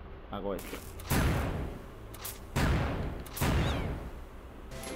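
Bombs explode with loud, deep booms.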